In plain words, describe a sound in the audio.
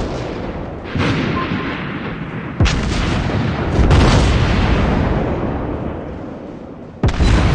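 Heavy guns fire in loud booming blasts.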